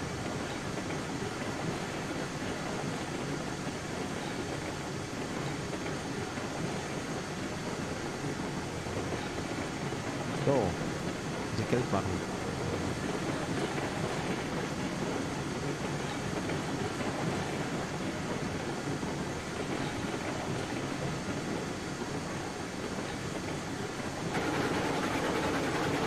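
A small steam locomotive chugs steadily along.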